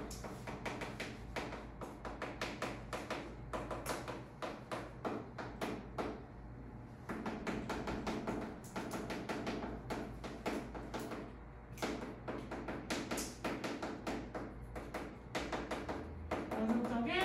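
Chalk taps and scratches on a board in quick strokes.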